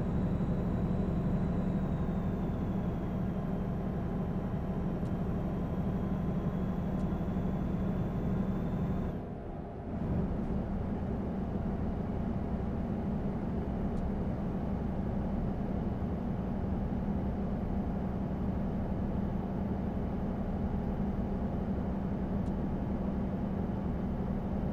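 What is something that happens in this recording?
Tyres roll on a highway.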